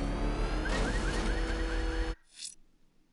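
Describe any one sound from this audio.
A powerful car engine roars at speed.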